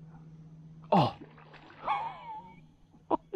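A fishing lure splashes into calm water.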